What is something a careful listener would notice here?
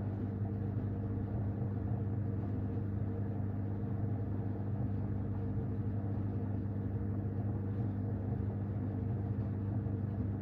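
A washing machine hums steadily.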